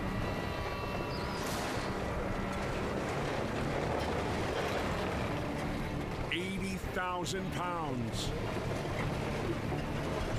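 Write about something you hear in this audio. Truck tyres spin and churn in wet mud.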